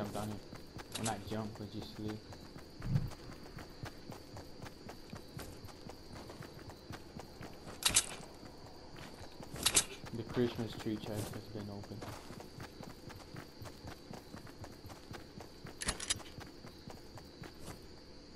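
Footsteps run through grass.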